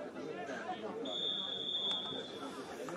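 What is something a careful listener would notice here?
A referee's whistle blows sharply across an open field.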